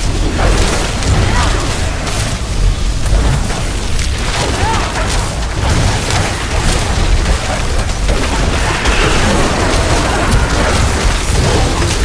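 Heavy booming impacts rumble throughout.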